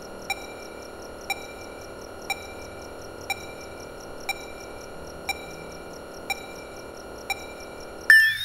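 A computer beeps steadily about once a second.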